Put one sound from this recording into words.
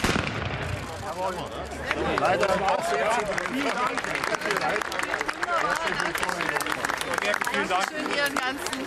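Men and women chatter in a crowd outdoors.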